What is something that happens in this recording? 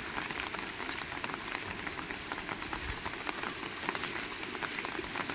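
Rain falls steadily outdoors, with drops pattering close by.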